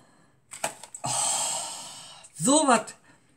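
A woman sniffs loudly.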